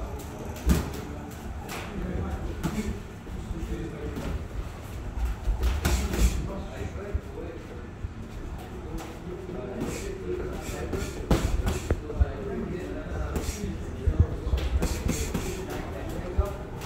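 Feet shuffle and scuff on a canvas floor.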